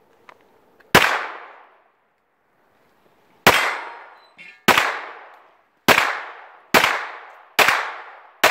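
A pistol fires sharp, echoing shots in quick succession.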